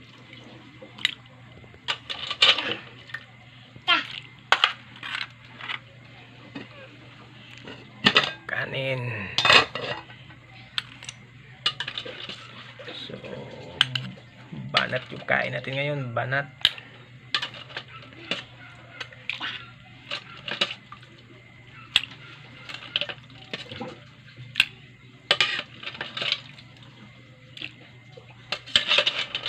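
A metal ladle clinks and scrapes against a pot.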